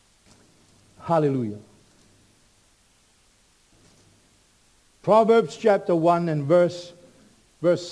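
An older man speaks slowly and deliberately through a microphone, with long pauses.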